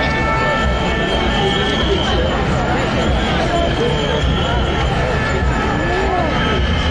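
A large crowd of men and women murmurs and talks outdoors.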